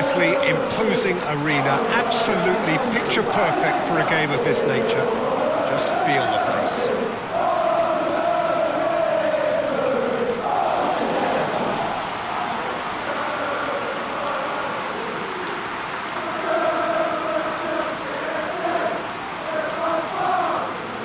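A large stadium crowd sings and chants loudly throughout.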